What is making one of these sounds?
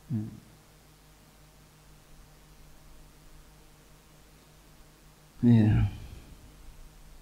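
A man speaks slowly and solemnly into a microphone, in short bursts with long pauses.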